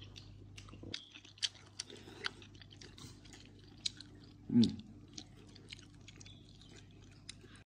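A man chews and slurps food close by.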